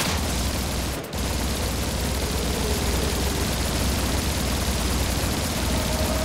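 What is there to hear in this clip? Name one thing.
An energy weapon fires sharp blasts.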